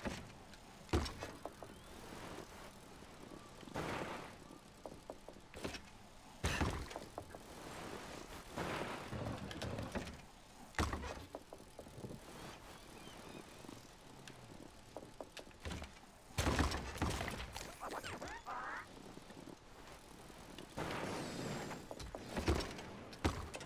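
A bike lands hard with heavy thuds.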